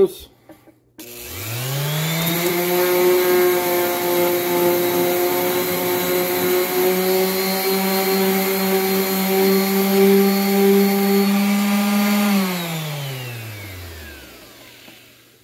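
An electric random orbital sander runs free without touching anything, spinning up to a steady hum and then winding down.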